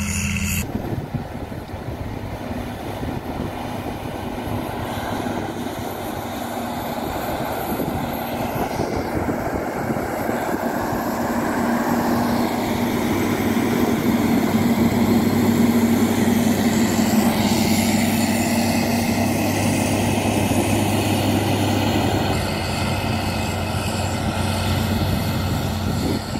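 A diesel engine of a road grader rumbles steadily up close.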